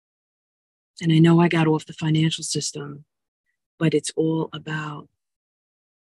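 A woman speaks calmly and close to the microphone, in short phrases with pauses.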